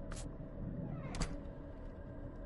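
A swinging door bumps shut with a thud.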